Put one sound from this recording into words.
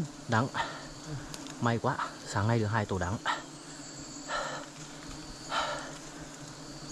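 Bees hum steadily around a hive.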